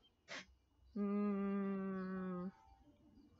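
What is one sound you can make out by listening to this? A young woman hums a steady note close by.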